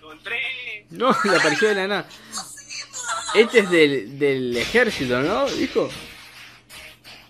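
A young man laughs excitedly close to a microphone.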